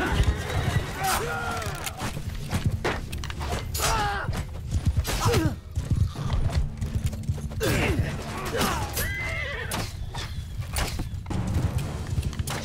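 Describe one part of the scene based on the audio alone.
A crowd of men shout and yell in battle.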